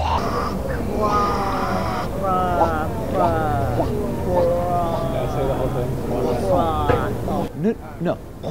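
A woman sings loudly, close up.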